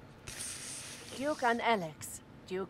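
A young woman speaks into a handheld radio.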